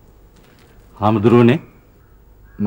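A man speaks urgently, close by.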